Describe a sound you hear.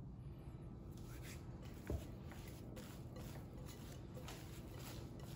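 Hands press and squish soft dough.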